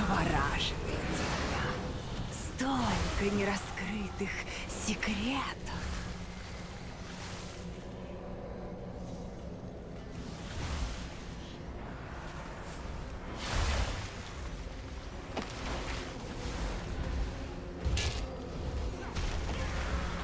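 Spells crackle and burst in a fantasy battle.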